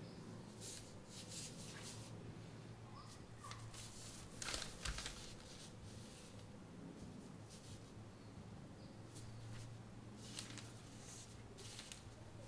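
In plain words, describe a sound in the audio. A soft ink brush sweeps across rice paper.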